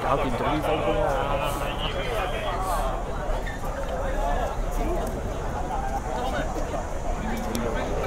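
A crowd of people chatters close by, outdoors.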